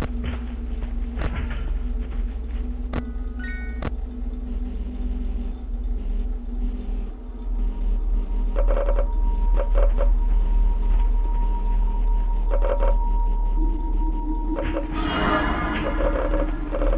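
An electric fan whirs steadily.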